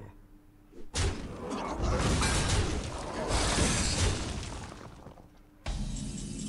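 Magical game effects burst and crackle loudly.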